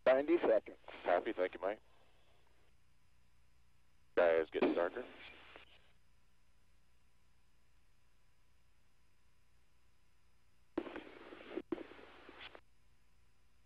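A man speaks briefly over a radio link, in short calm bursts.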